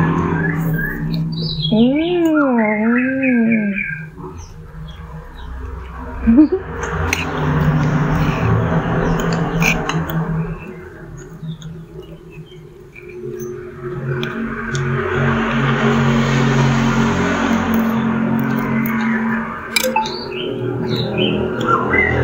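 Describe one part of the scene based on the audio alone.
Spoons scrape and clink against plates.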